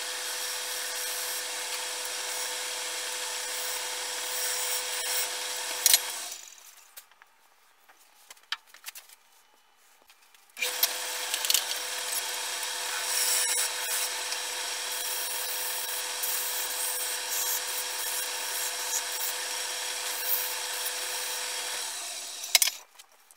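A lathe motor hums steadily, then stops and starts again.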